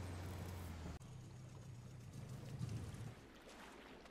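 A boat motor hums and then stops.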